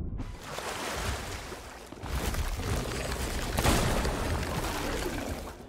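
A stream of water rushes and splashes steadily.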